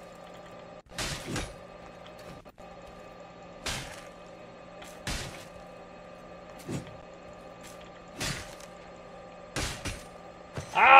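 Metal armour and swords clang.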